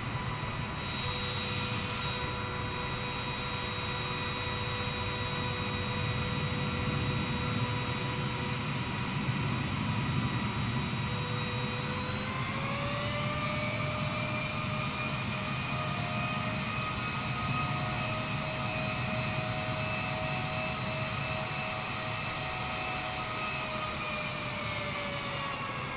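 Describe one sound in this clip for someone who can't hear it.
A jet engine whines and rumbles steadily, rising in pitch partway through.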